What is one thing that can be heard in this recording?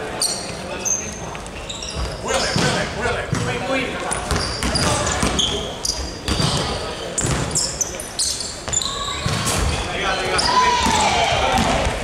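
Shoes squeak sharply on a wooden floor in a large echoing hall.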